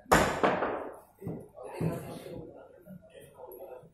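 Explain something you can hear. Billiard balls knock together and roll across the table.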